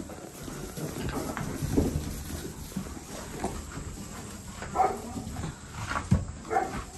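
Goat hooves shuffle and rustle on straw.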